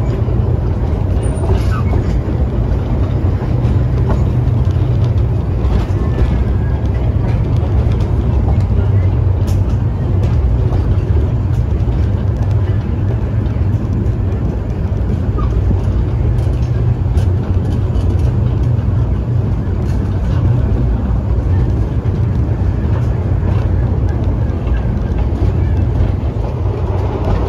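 A small steam train rumbles and clatters steadily along the track.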